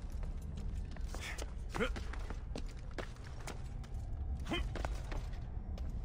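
Soft footsteps pad on stone.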